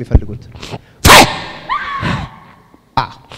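A man cries out in distress.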